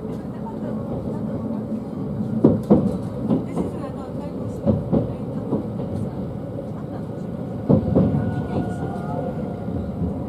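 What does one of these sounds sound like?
Another train rushes past close by.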